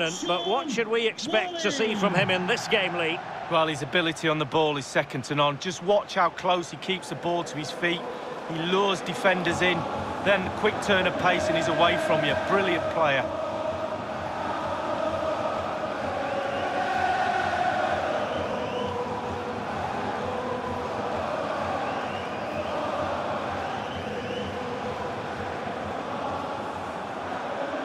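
A large stadium crowd roars and cheers steadily in the distance.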